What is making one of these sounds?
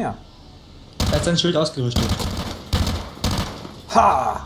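Rapid gunshots ring out in quick bursts.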